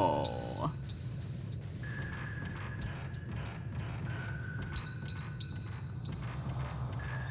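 Footsteps creak softly on wooden floorboards.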